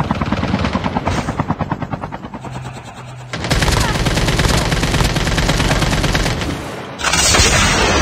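A rifle fires in rapid bursts of game gunfire.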